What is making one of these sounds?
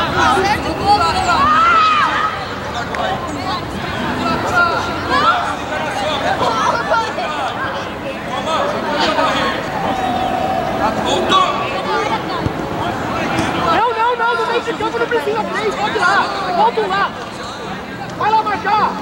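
Children shout to each other across an outdoor field.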